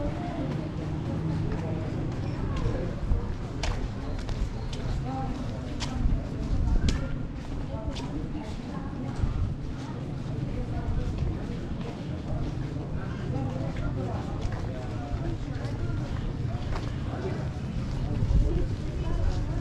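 Many men talk in a low murmur at a distance outdoors.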